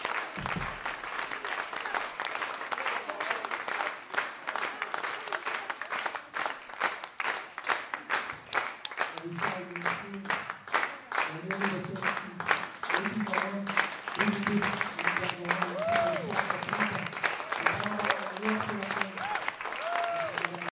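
An audience claps and applauds in an echoing hall.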